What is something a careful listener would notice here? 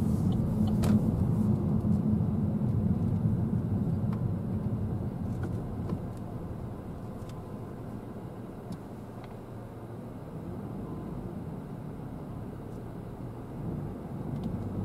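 A car engine hums steadily from inside the cabin, slowing down as the car rolls to a stop.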